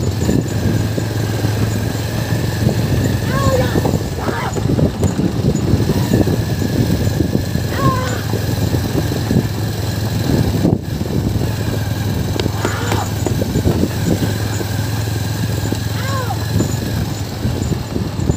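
A wooden bullock cart rattles and creaks as it rolls along a dirt track.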